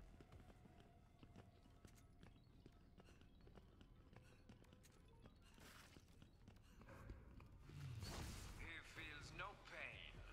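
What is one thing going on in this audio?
Footsteps tap softly on the floor.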